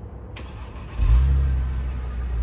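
A Mercedes-Benz V6 sedan engine revs.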